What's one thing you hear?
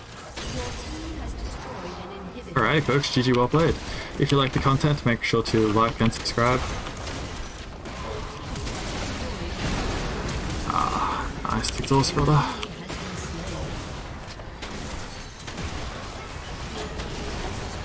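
Fantasy battle sound effects of spells and weapons crackle and clash.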